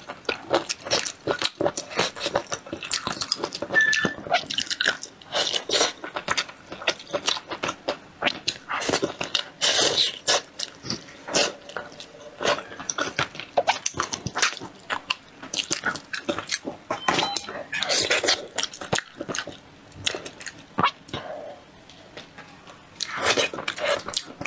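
A young woman chews and slurps food loudly close to a microphone.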